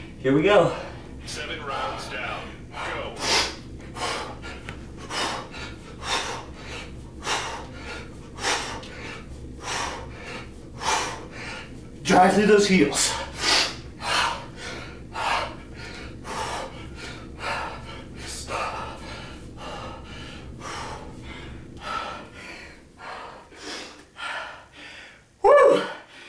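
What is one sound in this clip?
A young man speaks briefly close by.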